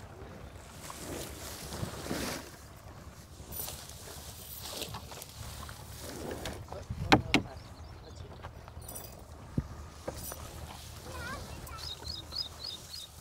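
Buffaloes munch and rustle through green fodder close by.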